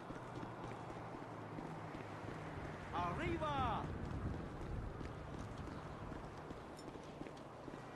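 Footsteps run quickly over concrete.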